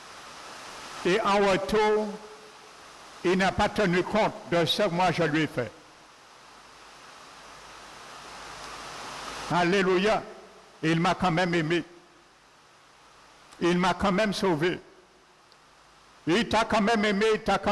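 A man speaks calmly in short phrases through a microphone, with pauses between them.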